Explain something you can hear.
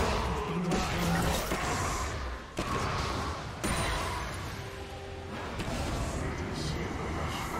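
Fantasy battle sound effects clash and whoosh from a video game.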